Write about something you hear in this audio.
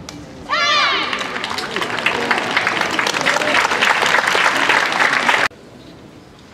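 A large crowd applauds and cheers in an echoing hall.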